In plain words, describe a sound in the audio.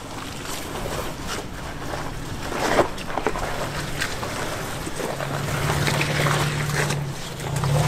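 Tyres crunch and grind over loose rocks and gravel.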